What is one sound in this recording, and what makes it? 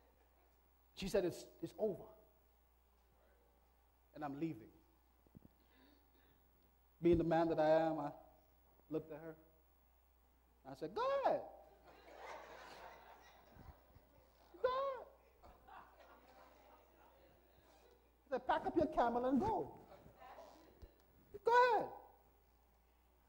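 A man preaches with animation into a microphone, his voice ringing in a large echoing hall, in bursts with pauses.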